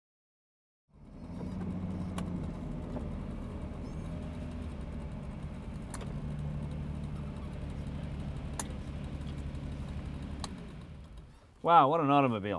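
A car engine idles steadily and slowly winds down.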